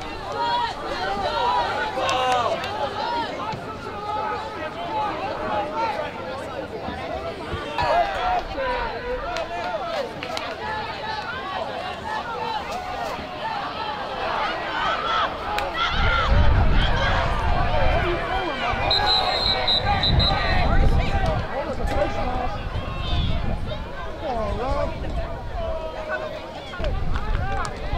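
A crowd of young men and spectators shout and chatter outdoors.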